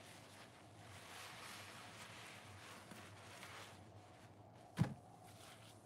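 Hands squeeze a soapy sponge with soft squelching.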